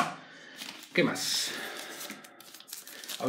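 A cardboard box rustles and scrapes as a hand lifts something out of it.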